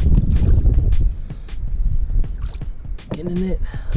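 Water splashes and ripples as a net dips into it.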